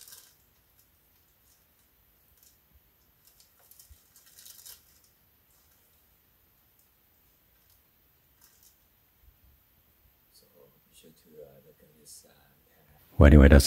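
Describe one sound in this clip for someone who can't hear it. Plastic wrapping crinkles and rustles softly as it is handled.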